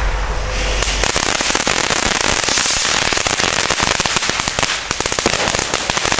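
A firework fountain fizzes and crackles loudly outdoors.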